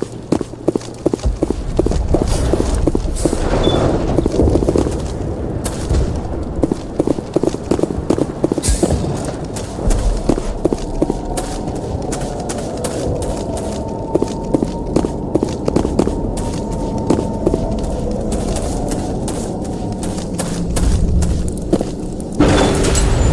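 Footsteps tap quickly on hard floors.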